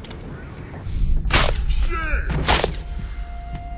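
A dull thud lands close by.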